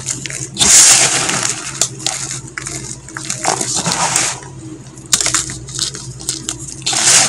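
Crumbly chalk pieces crunch and rustle as a hand scoops them.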